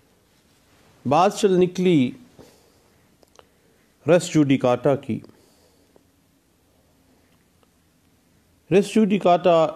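A middle-aged man speaks calmly in short bursts, close to a microphone.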